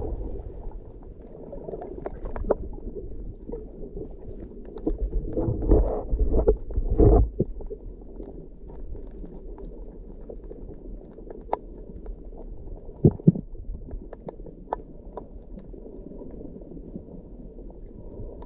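Water swirls and burbles with a dull, muffled sound underwater.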